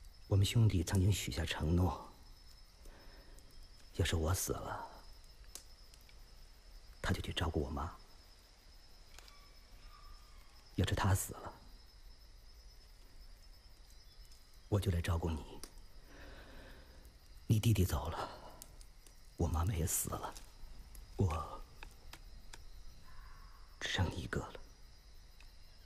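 A man speaks softly and slowly, close by, in short phrases with pauses.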